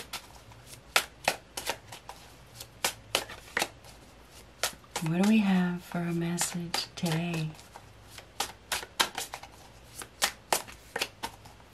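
Cards riffle and tap as a woman shuffles a deck.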